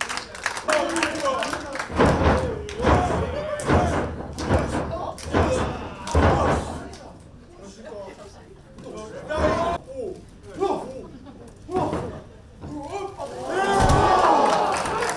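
Bodies slam heavily onto a wrestling ring mat with loud thuds.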